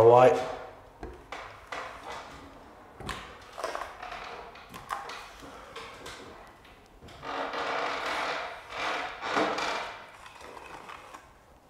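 A trowel scrapes plaster across a ceiling.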